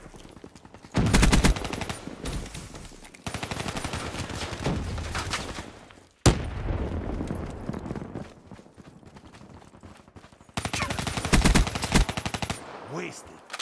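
Rapid automatic gunfire rattles in short bursts.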